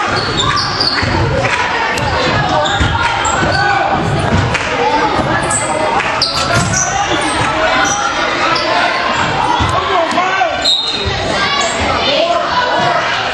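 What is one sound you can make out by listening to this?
A basketball thumps on the court.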